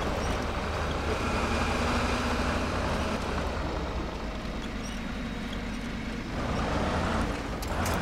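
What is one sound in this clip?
Rocks crunch and scrape under a truck's tyres.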